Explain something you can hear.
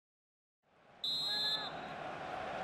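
A referee's whistle blows once, short and shrill.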